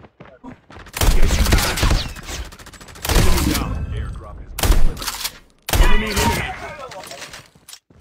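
Gunshots and explosions ring out in a video game.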